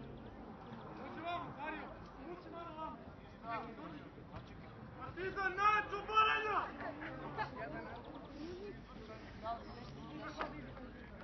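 Adult men talk and call out to each other outdoors at a distance.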